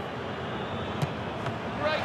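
A football is struck with a sharp thud.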